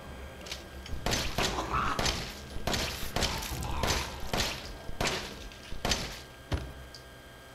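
Pistol shots ring out several times in quick succession.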